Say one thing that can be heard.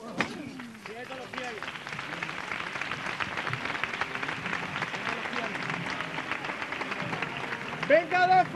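A large crowd claps and murmurs outdoors.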